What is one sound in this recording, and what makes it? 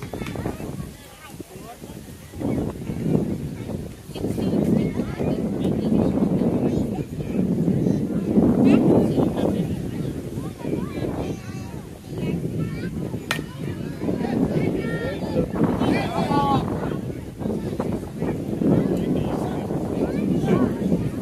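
Adults and children nearby chatter and call out outdoors.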